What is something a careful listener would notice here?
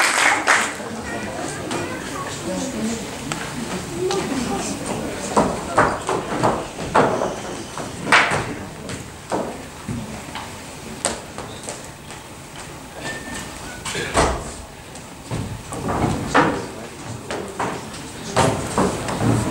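Feet thump on a wooden stage in an echoing hall.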